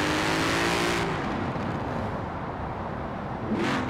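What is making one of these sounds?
A car engine drops to a lower hum as it slows down.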